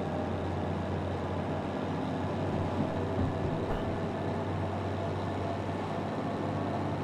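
Train wheels rattle and clack along the rails.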